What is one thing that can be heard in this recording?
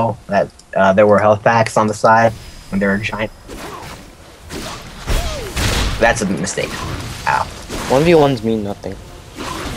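Game spell effects zap and crackle in a fight.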